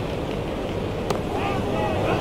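A cricket bat knocks a ball.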